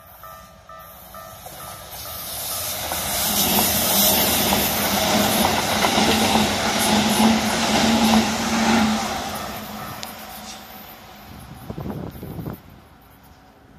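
An electric train rumbles and clatters past close by, then fades away.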